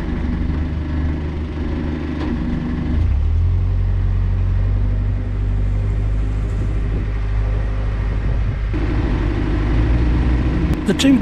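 A boat's engine chugs steadily at low speed.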